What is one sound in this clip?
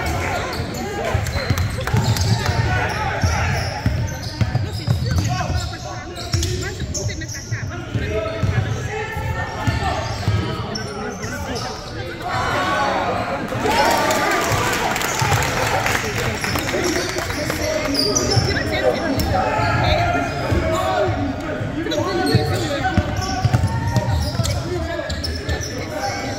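Young men shout to each other in a large echoing gym.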